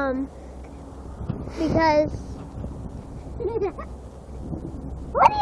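A small child shouts playfully.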